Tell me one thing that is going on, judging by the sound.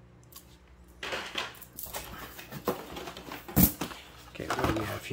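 Plastic blister packaging rustles and crinkles in a hand.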